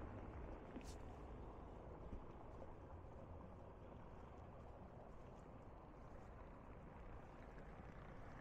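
Waves wash gently against a sea wall.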